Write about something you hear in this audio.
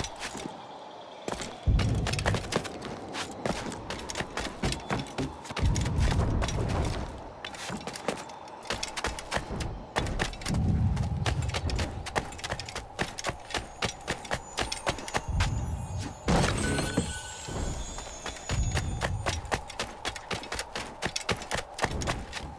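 Quick footsteps run and patter on stone.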